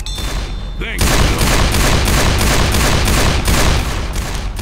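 A pistol fires shots.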